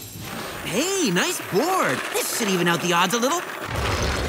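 Skateboard wheels roll fast over pavement.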